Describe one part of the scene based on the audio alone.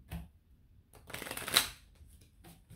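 Playing cards riffle and slap as they are shuffled.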